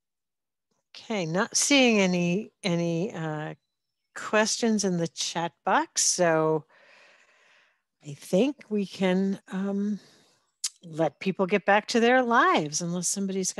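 A middle-aged woman speaks calmly over an online call.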